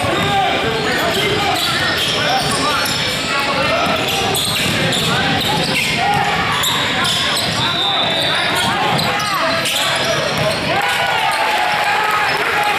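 Teenage boys call out to each other across the court.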